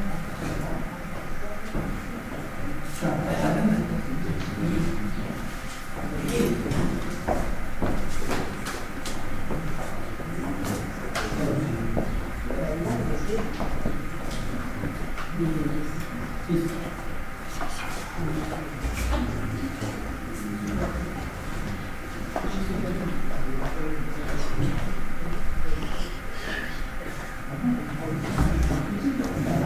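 Billiard balls click against each other on nearby tables.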